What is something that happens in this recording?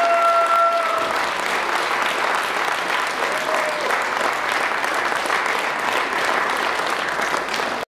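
An audience applauds steadily in an echoing hall.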